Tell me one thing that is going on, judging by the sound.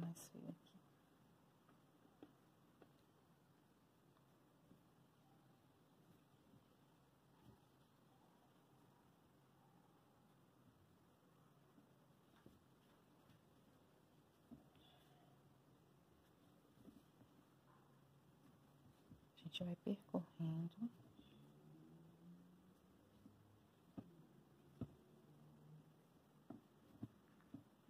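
A crochet hook clicks faintly against thick cotton yarn.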